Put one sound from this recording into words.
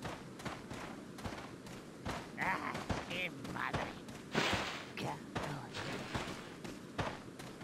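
Footsteps crunch on the ground at a steady pace.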